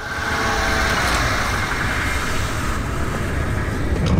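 Heavy wooden doors creak open.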